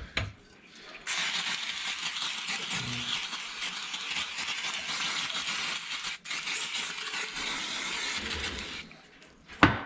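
An aerosol can hisses as it sprays.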